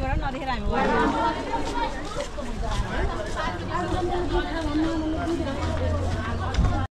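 A crowd of men and women talk and chatter nearby outdoors.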